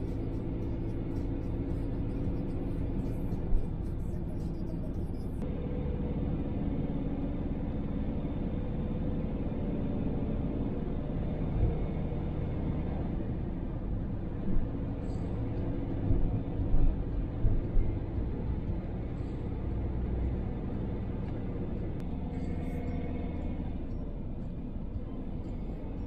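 A van drives along a wet road, heard from inside the cab.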